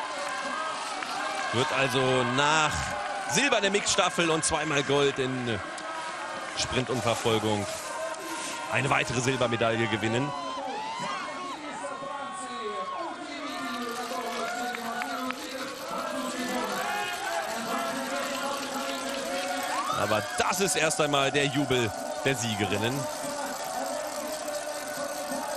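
A crowd cheers and claps outdoors.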